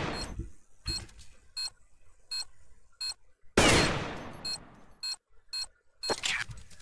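A bomb beeps at a steady, even pace.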